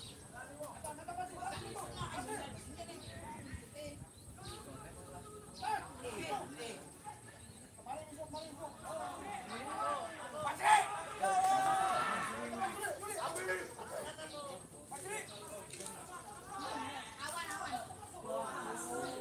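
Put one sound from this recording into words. Young men shout and call to each other across an open field outdoors.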